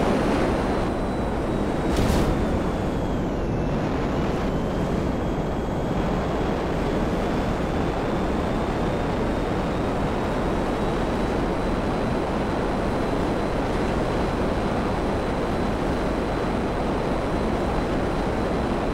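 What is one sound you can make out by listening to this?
A jet engine roars steadily as a fighter plane flies.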